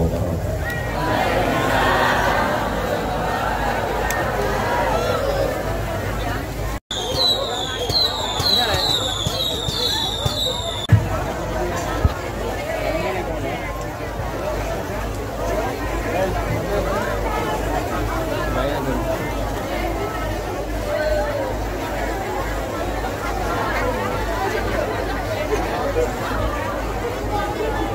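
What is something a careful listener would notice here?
A crowd of men and women chatters loudly nearby.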